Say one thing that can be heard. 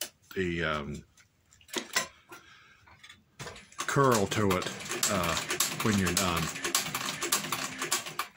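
A sewing machine stitches through thick leather with a rapid clicking.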